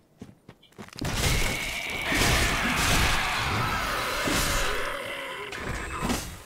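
Sword blows strike a creature in a noisy fight.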